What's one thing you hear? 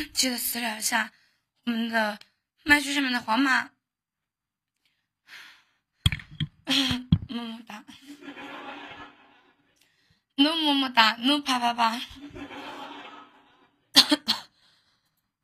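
A young woman sings into a microphone, in short phrases with pauses between them.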